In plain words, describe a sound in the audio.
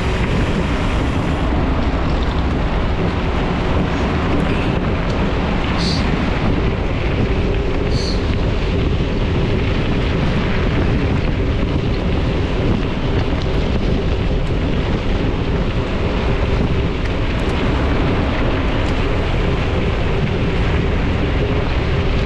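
Bicycle chains and parts rattle over bumps.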